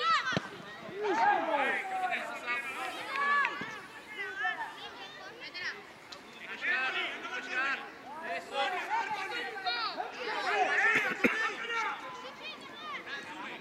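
Young players shout and call out across an open pitch outdoors.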